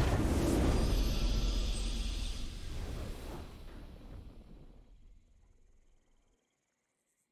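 A triumphant game victory fanfare rings out and slowly fades away.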